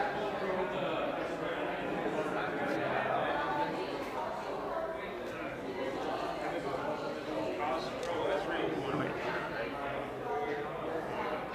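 Small plastic pieces tap on a table.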